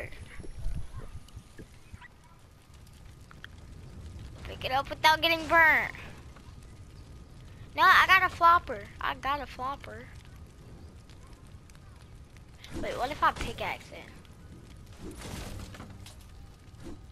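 Flames crackle steadily.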